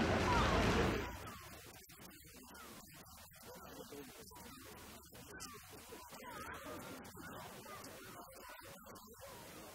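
Men and women in a crowd talk quietly nearby.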